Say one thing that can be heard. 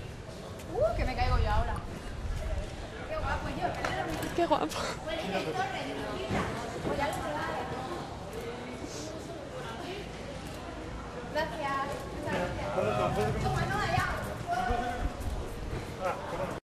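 Several people talk over one another outdoors.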